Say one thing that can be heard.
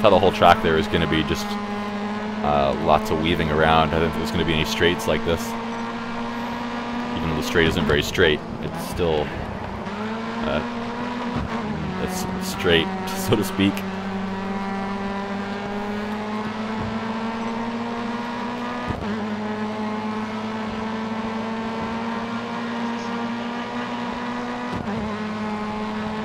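A racing car engine roars steadily, its pitch climbing and dropping as it shifts through the gears.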